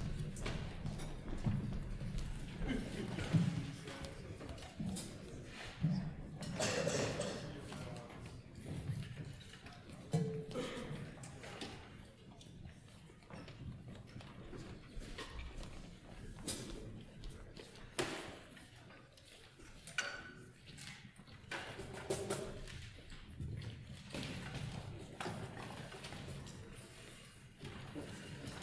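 Music stands and chairs knock and clatter now and then.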